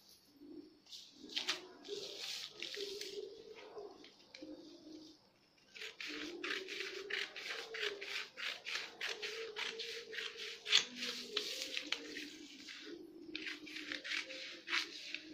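Scissors snip through newspaper in quick, repeated cuts.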